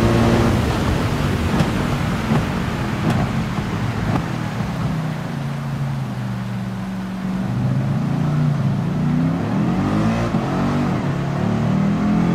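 Tyres hiss on a wet track.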